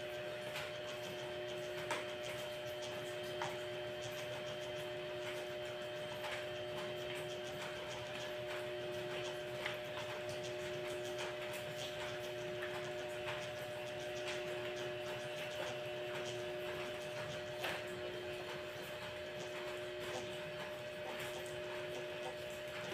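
A mop knocks lightly against a hard floor.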